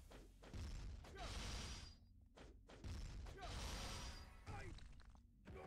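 Magic blasts whoosh and burst in quick succession.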